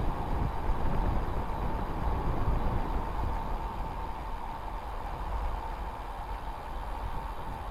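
Wind rushes and buffets steadily past a bicycle rolling downhill.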